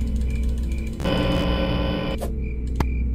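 Loud static hisses and crackles briefly.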